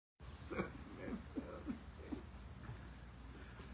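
Middle-aged men laugh heartily close by.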